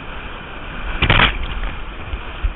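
Water splashes hard against a kayak.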